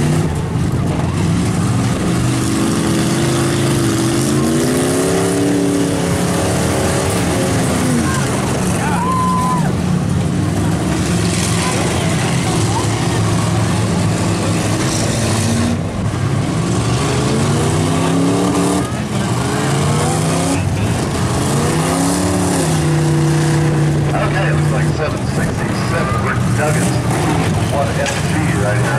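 Car engines roar and rev up and down loudly nearby, outdoors.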